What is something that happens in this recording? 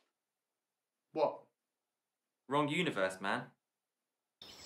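A young man speaks clearly and close by.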